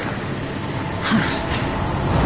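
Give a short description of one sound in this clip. A heavy body lands with a loud thud.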